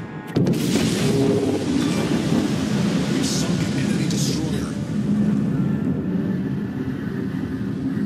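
Flames roar and crackle on a burning ship.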